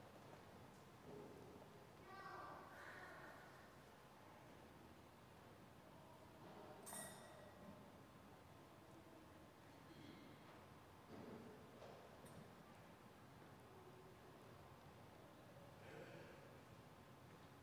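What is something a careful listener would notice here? A man speaks in short phrases through a microphone in a large echoing hall.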